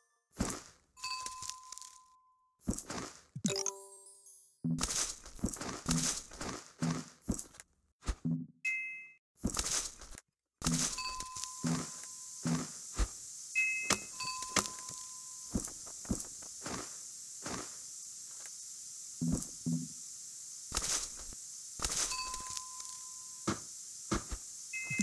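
Short game chimes ring out again and again.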